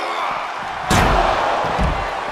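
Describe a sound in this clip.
A heavy body slams onto the floor with a thud.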